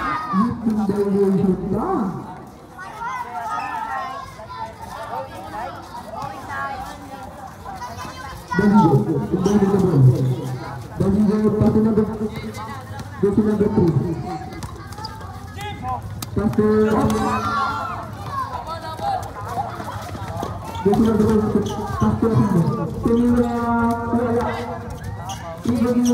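A crowd of young spectators shouts and cheers outdoors.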